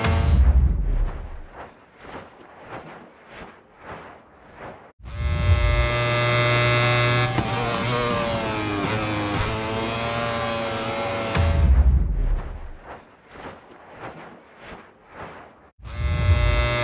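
A motorcycle engine sputters and pops in short bursts while slowing.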